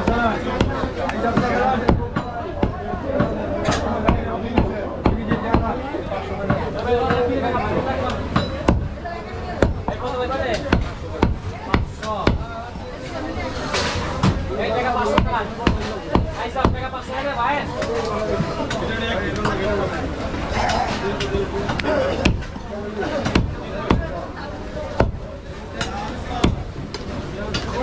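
A cleaver chops meat on a wooden block with sharp, repeated thuds.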